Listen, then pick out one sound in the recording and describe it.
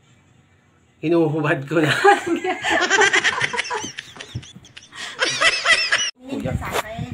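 A young man laughs loudly and heartily.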